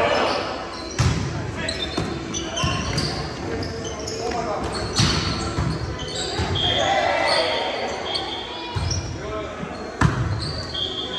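A volleyball thumps off hands and arms in a large echoing gym.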